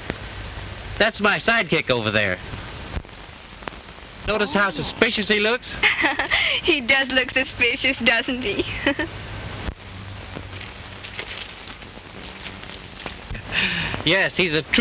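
A young woman talks.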